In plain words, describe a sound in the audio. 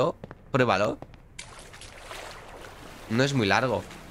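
Water splashes and laps.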